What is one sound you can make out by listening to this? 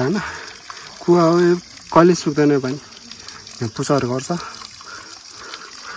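Water trickles from a pipe and splashes onto rocks.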